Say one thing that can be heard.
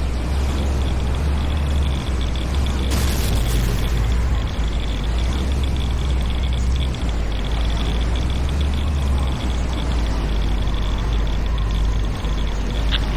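Electric sparks crackle and buzz steadily.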